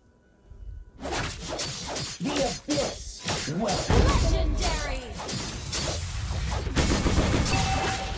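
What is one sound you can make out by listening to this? Game sword slashes and magic blasts clash rapidly.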